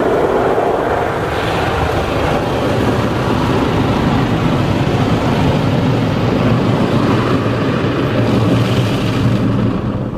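Water sprays and drums against a car's roof and windows.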